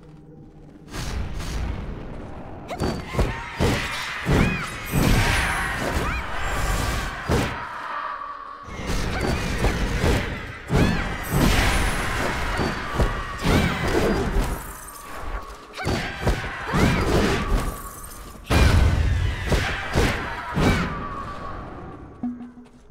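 Sword blows clash and slash in a fast fight.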